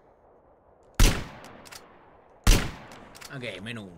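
Two loud rifle shots ring out, each followed by a short echo.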